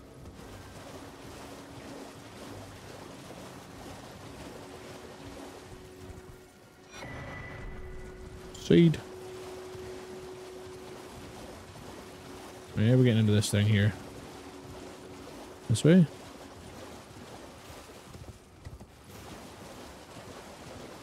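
A horse gallops splashing through shallow water.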